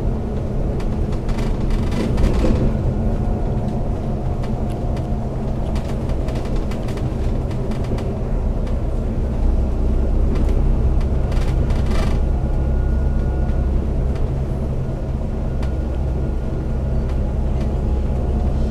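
A vehicle's engine hums steadily while driving.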